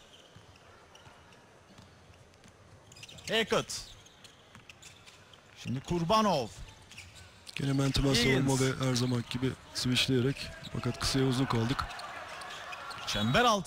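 A ball bounces on a wooden court.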